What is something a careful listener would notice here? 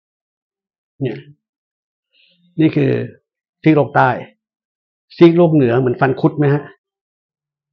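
An older man speaks calmly and clearly into a microphone, in short bursts with pauses.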